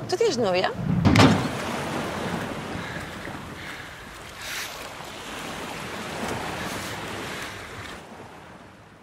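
Sea waves wash and roar onto the shore.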